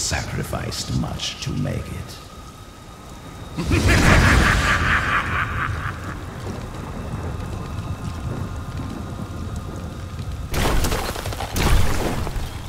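Skeleton warriors clatter and slash in a fight.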